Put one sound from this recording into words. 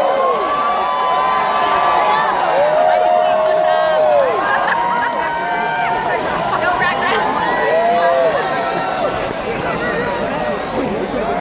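A large crowd cheers and whoops.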